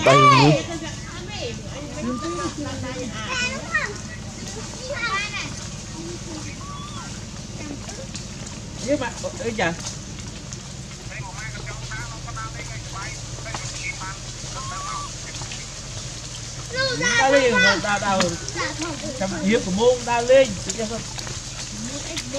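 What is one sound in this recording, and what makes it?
A baby monkey squeals and whimpers in high, wavering cries.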